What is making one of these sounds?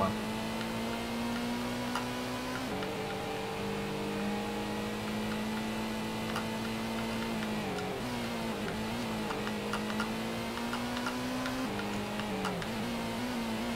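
A racing car engine roars at high revs, shifting gears and dropping in pitch as it slows for a bend.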